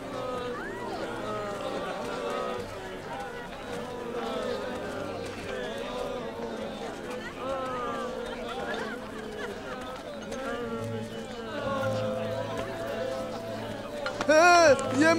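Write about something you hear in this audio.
A crowd of men and women murmurs and talks nearby.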